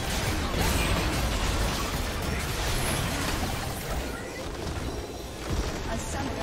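Electronic spell and weapon effects crackle and clash in quick bursts.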